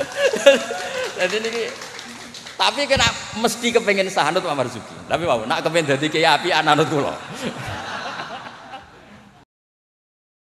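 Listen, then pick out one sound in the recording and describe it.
Men laugh heartily nearby.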